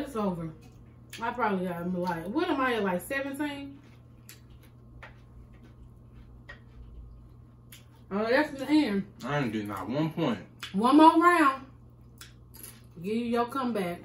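Tortilla chips crunch as they are chewed close to a microphone.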